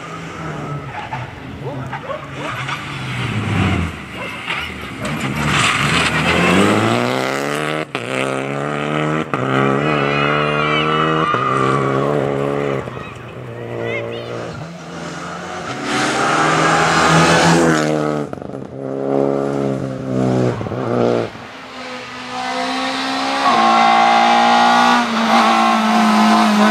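A rally car engine roars and revs hard as cars race past.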